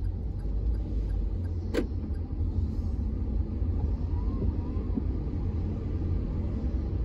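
A car drives on a wet road, heard from inside as a low rumble with tyre hiss.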